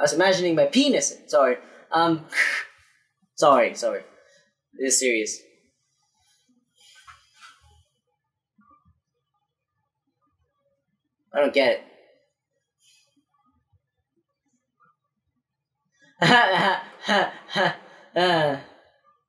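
A young woman speaks animatedly, close to a microphone, in a quiet, dead-sounding room.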